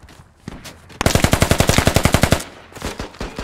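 An automatic rifle fires a rapid burst.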